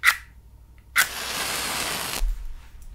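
A match flares up with a hiss.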